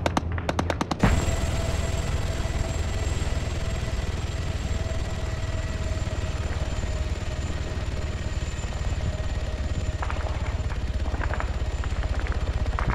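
A helicopter's rotor thuds steadily as the helicopter flies past.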